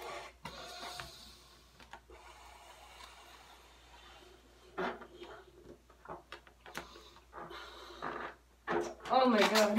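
A rubber balloon squeaks as it is handled.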